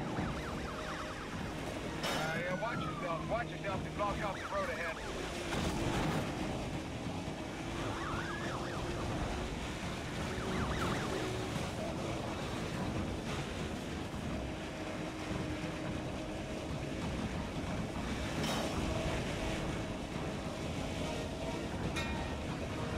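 Tyres hiss and rumble on the road.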